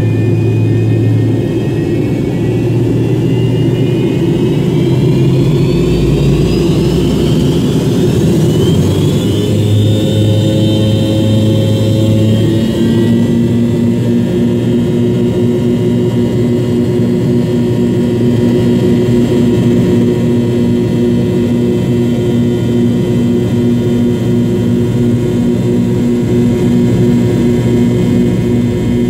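Jet engines roar steadily and whine as an airliner taxis.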